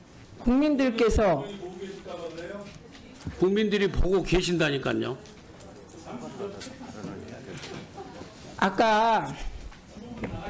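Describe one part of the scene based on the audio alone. A middle-aged man speaks loudly and forcefully into a microphone.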